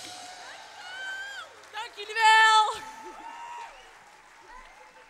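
Young women sing together through microphones, holding a long high note.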